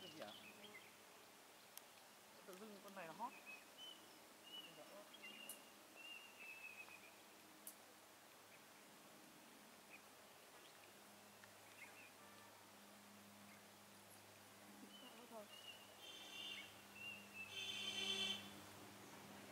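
Small birds chirp in short high calls from the trees.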